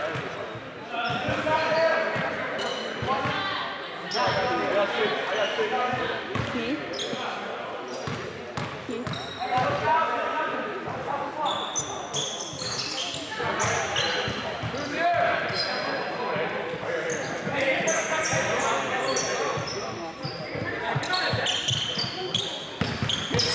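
Young men call out and talk across an echoing gym.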